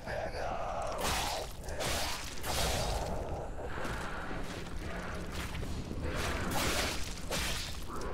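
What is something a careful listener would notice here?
Blades swing and slash with sharp whooshing bursts.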